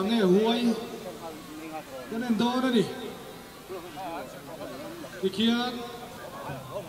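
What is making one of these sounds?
A man calls out loudly outdoors.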